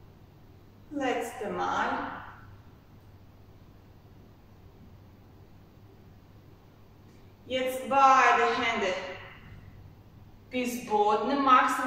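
A young woman speaks calmly through a close microphone.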